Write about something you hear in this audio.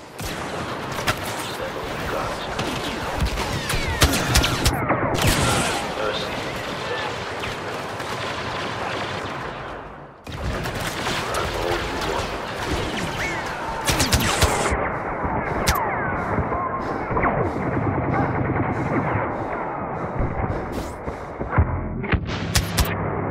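Blaster rifles fire in rapid bursts with sharp crackling shots.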